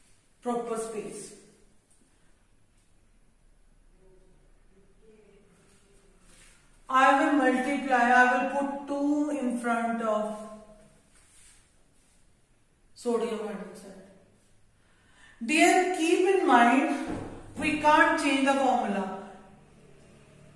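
A woman speaks calmly and clearly close by.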